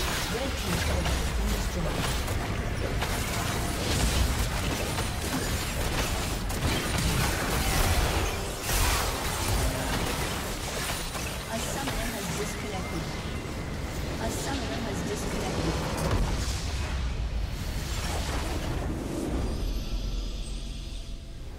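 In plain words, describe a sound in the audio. Game spells and attacks crackle, whoosh and boom in a busy battle.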